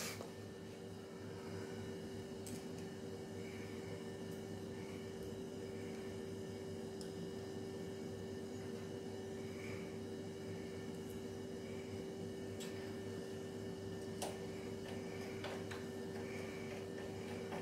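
Small metal parts click and tap softly as a hand works on them.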